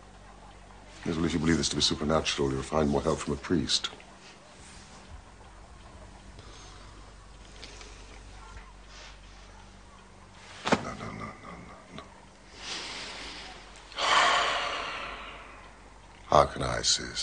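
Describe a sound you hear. A middle-aged man speaks crisply and with animation.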